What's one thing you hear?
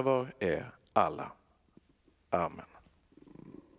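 A man chants loudly through a microphone in a large echoing hall.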